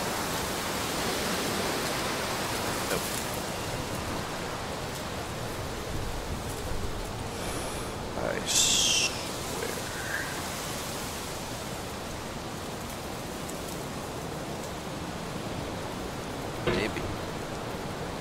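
A metal hammer scrapes and knocks against rock.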